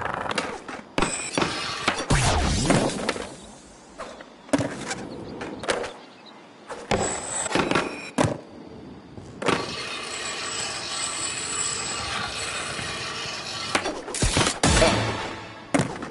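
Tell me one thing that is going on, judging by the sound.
Skateboard wheels clack as a board lands.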